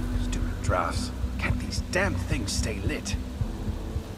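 A young man speaks in a low voice through a microphone.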